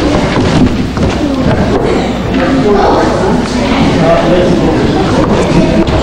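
Elderly men and women chatter around a table.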